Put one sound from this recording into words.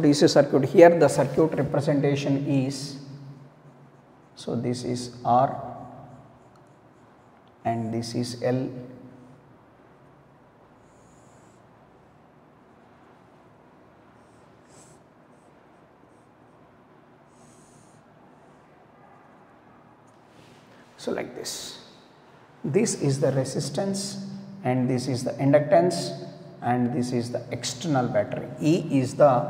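A man speaks calmly, as if explaining.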